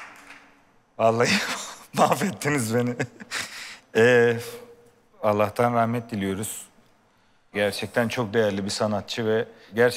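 A man speaks calmly into a close microphone, with pauses.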